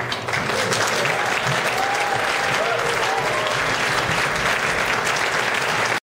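An acoustic guitar is strummed steadily.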